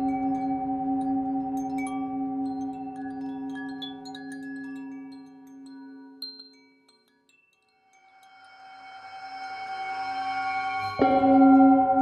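A singing bowl rings with a deep, steady hum that swells and fades.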